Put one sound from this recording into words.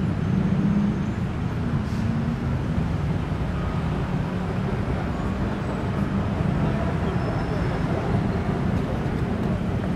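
Footsteps shuffle on pavement as a crowd walks past.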